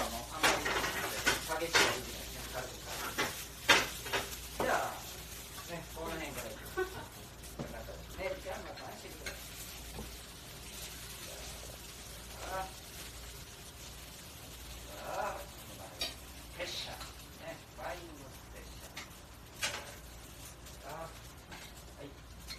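Metal utensils clink and clatter close by.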